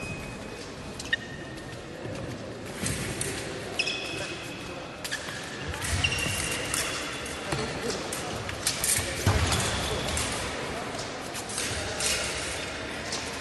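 Fencers' shoes squeak and tap on a floor in an echoing hall.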